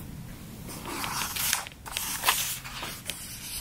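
A page of a book turns with a soft papery rustle.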